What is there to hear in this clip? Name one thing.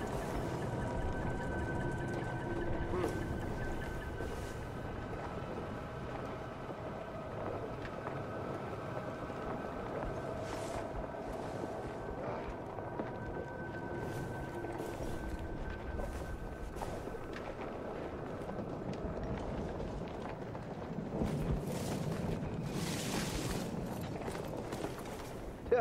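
Footsteps thud softly on a floor.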